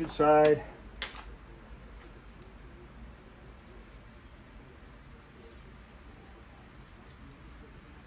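A hand rubs a cloth.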